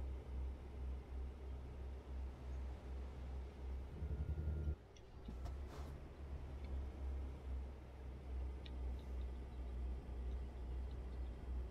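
A truck's diesel engine rumbles steadily as it drives along.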